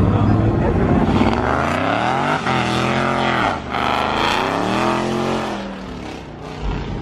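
A car engine roars loudly as it speeds past and fades.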